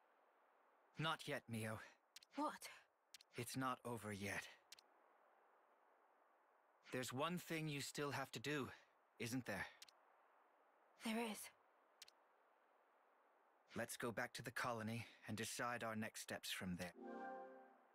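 A man speaks calmly and smoothly, close by.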